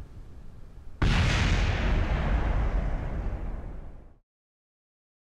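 A craft explodes with a loud roaring blast that fades away.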